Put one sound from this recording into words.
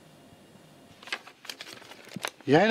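Paper rustles as a man flips through pages.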